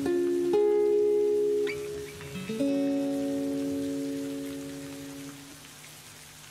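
An acoustic guitar plays ringing chords that slowly fade.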